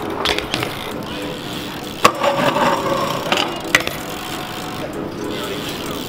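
Bike tyres roll and rattle over concrete.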